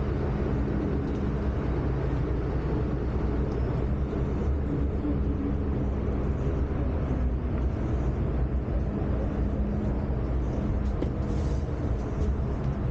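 A subway train rumbles and hums steadily as it travels along the track.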